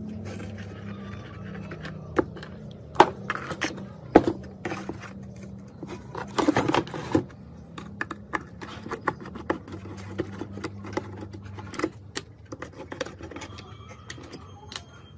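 Plastic parts and wires click and knock as hands handle them.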